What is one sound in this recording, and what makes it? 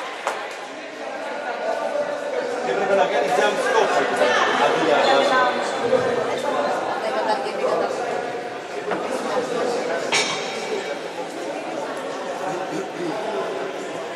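A group of young women and men talk and shout together nearby.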